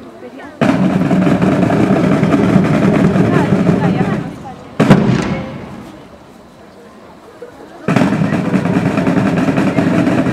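A drum rolls loudly.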